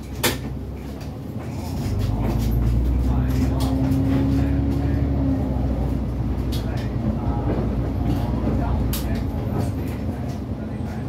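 A bus engine rumbles low and steadily, growing louder as the bus pulls away.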